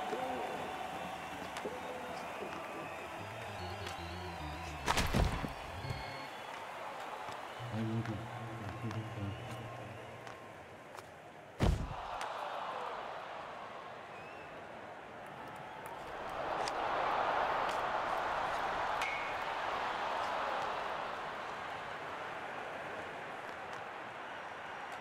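A large crowd cheers and murmurs in an arena.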